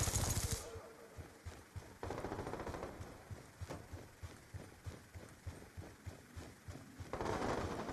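Footsteps crunch quickly on dirt and gravel.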